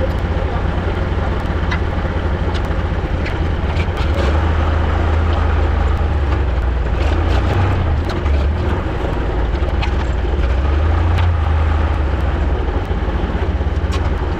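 Loose metal parts rattle and clank as a tractor rolls over bumpy ground.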